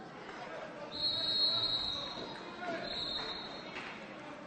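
A referee's whistle blows sharply twice.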